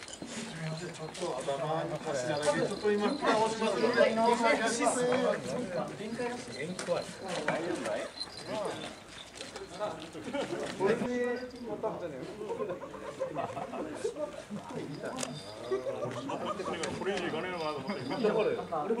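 Several men talk with one another nearby.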